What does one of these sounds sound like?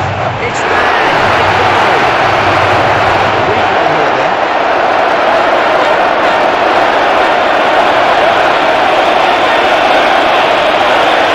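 A stadium crowd roars and cheers loudly throughout.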